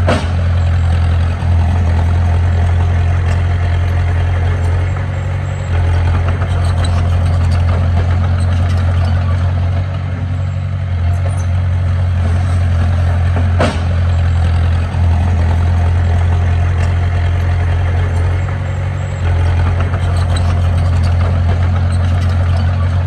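A small bulldozer's diesel engine rumbles close by, rising and falling as it works.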